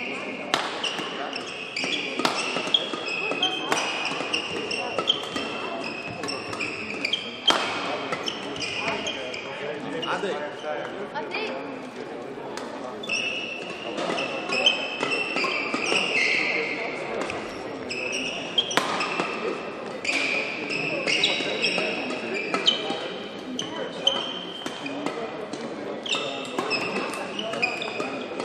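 Rackets strike a shuttlecock in a quick rally in a large echoing hall.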